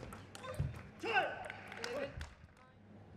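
A young woman shouts out after winning a point.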